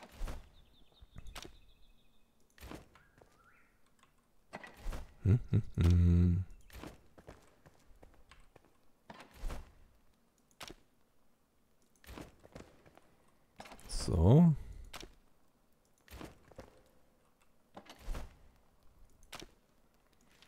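Wooden chests clatter open and shut with knocks.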